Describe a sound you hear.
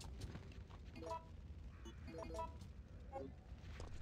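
Menu beeps chime in short tones.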